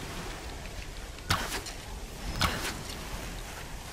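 A bowstring snaps as an arrow is shot.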